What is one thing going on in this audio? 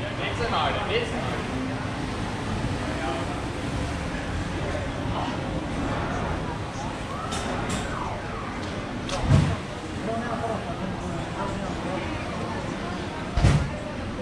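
A crowd of people chatters and talks outdoors in a busy street.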